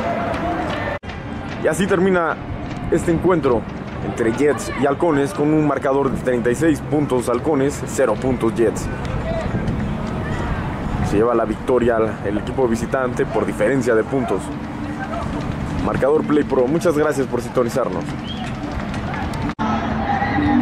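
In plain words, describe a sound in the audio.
Young men call out and chatter nearby outdoors.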